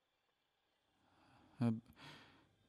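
Paper pages rustle as a book is opened.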